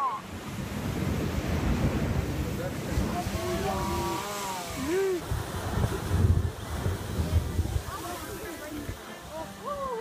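Water from a blowhole bursts up and splashes loudly on rocks.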